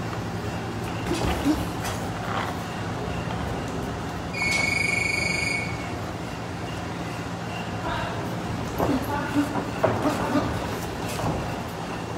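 Boxing gloves thud against bodies in quick bursts.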